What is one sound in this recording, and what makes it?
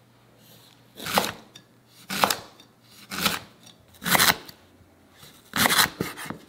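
A knife slices through ginger and taps sharply on a wooden board.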